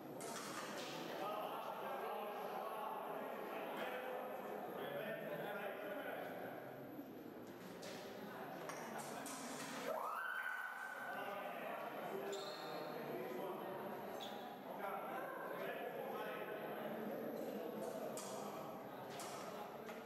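Men and women talk in a large echoing hall.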